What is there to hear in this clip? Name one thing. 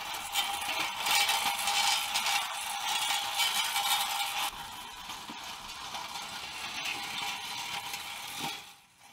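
Rubber treads roll and rumble over asphalt.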